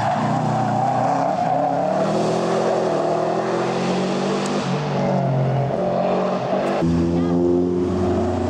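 A rally car engine roars loudly, revving high and dropping as it shifts gears.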